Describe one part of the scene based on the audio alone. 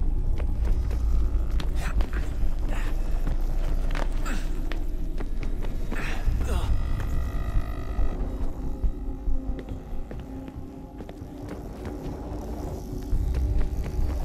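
Footsteps run and land on a hard floor.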